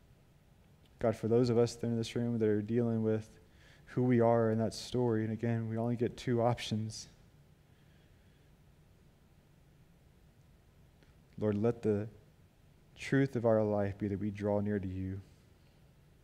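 A man speaks slowly and calmly into a microphone, with pauses, in a reverberant hall.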